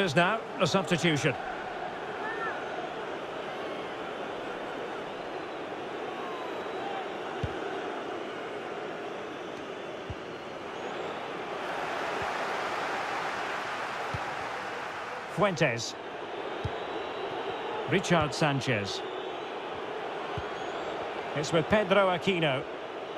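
A large stadium crowd murmurs steadily and swells in the middle.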